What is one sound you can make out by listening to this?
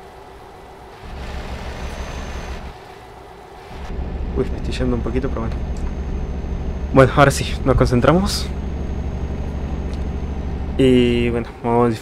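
A truck engine rumbles steadily as it drives along.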